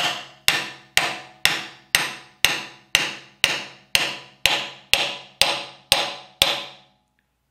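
A hammer strikes a metal punch in a quick, steady series of ringing blows.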